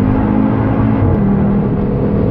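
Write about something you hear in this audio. A car engine briefly drops in pitch as a gear changes.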